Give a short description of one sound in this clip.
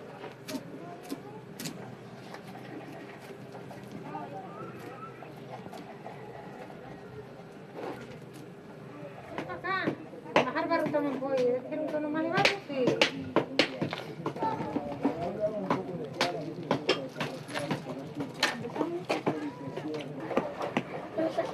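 Hands press and smear wet clay.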